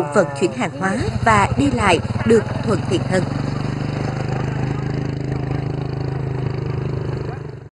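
A motorbike engine hums steadily nearby.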